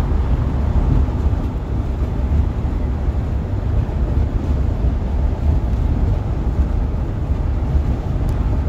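A vehicle's engine rumbles steadily while driving on a highway.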